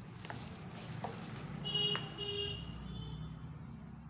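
A ruler taps down onto paper.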